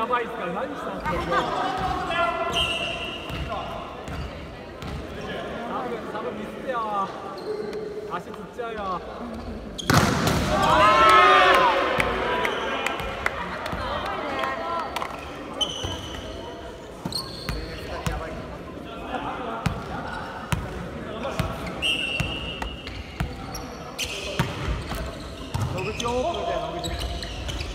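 A volleyball thumps as players strike it in a large echoing hall.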